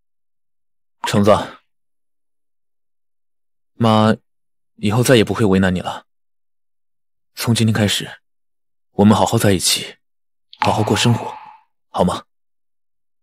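A young man speaks gently and warmly.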